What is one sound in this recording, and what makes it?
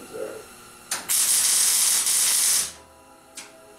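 An electric welder crackles and hisses steadily.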